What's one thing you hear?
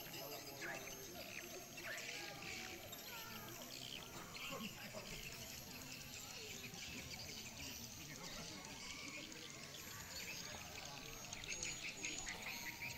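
A crowd of young people chatters in the distance outdoors.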